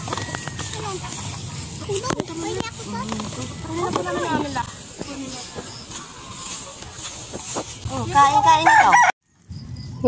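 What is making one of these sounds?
Young girls talk and laugh close by.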